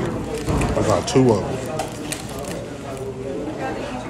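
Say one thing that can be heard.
A paper wrapper crinkles.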